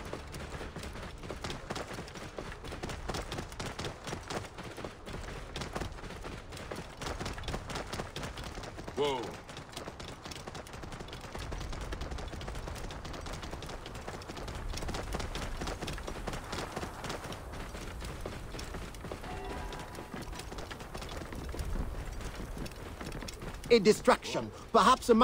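A camel's hooves thud steadily on sand and gravel.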